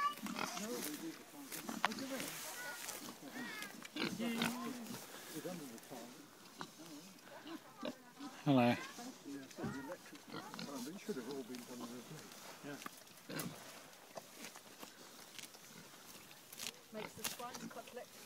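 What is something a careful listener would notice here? Pigs grunt and snort close by.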